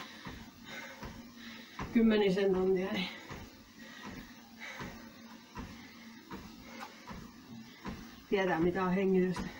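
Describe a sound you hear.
Footsteps thud steadily on a running treadmill.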